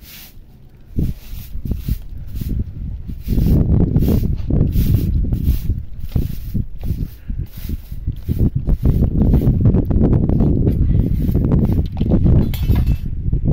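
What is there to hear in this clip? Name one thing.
A straw broom sweeps a dusty floor with quick, rough strokes.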